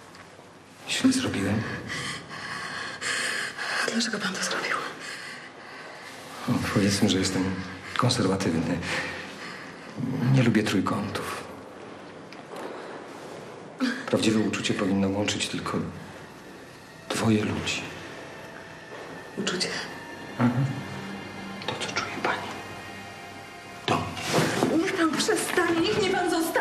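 A man speaks in a low, tense voice nearby.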